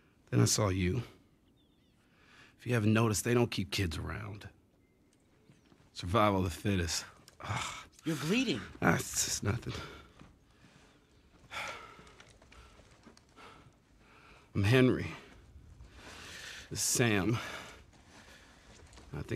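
A young man talks calmly into a microphone, close by.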